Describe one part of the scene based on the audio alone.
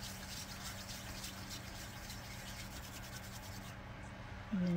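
Hands rub together briskly.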